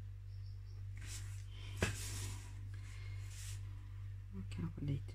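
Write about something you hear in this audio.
Paper rustles and slides across a table.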